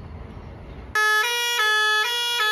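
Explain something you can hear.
A fire engine's two-tone siren blares loudly close by.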